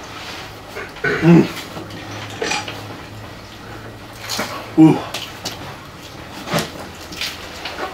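Chips crunch as food is chewed.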